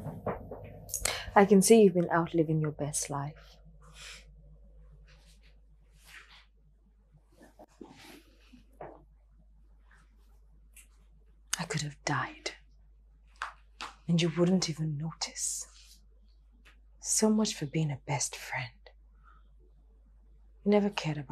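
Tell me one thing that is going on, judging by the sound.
A second young woman speaks in a tense, pleading voice close by.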